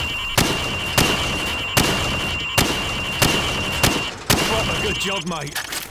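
A rifle fires rapid single shots.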